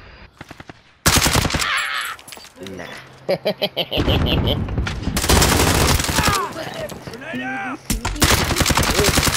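Gunshots from a scoped rifle ring out in a video game.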